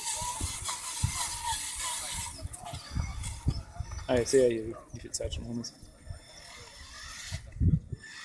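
A small wheeled robot's electric motor whirs as the robot rolls over soil.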